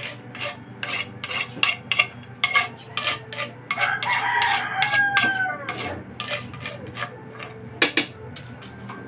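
A wooden paddle knocks and scrapes rhythmically against a metal pot.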